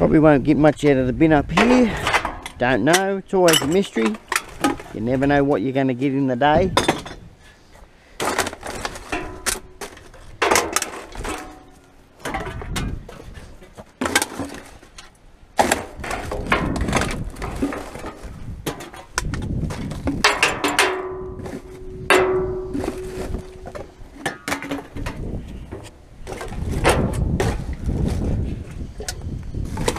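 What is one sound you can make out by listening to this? A grabber tool scrapes against a metal barrel.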